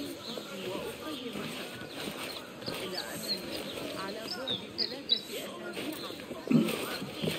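Hands grip and scrape on stone as a climber pulls upward.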